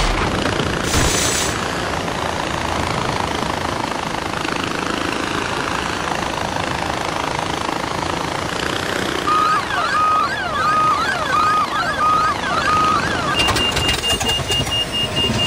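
A pulley whirs along a taut cable.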